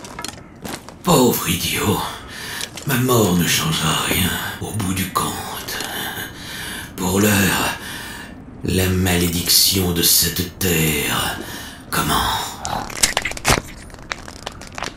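An elderly man speaks in a deep, menacing voice.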